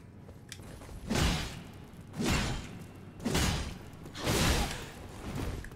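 Sword blows swish and strike in quick bursts.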